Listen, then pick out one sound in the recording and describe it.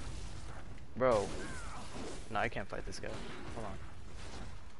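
Monstrous creatures shriek and growl.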